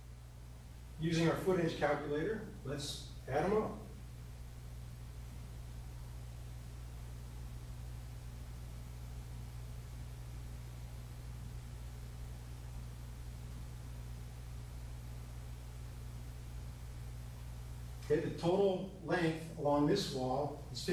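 A man speaks calmly nearby, pausing often.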